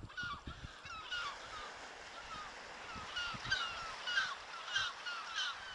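A seabird gives repeated sharp, harsh calls close by.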